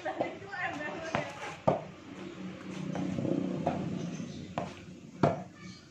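A ball bounces and thuds on pavement outdoors.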